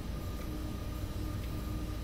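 A windscreen wiper swishes across the glass.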